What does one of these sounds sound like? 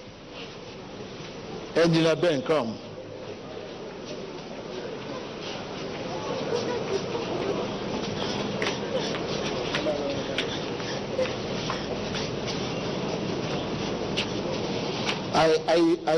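A large crowd chatters and murmurs in a big echoing hall.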